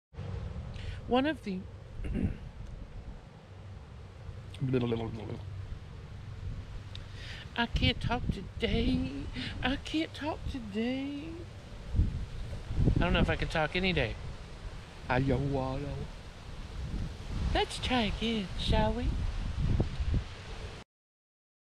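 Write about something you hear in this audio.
A middle-aged woman talks with animation close to a microphone, outdoors.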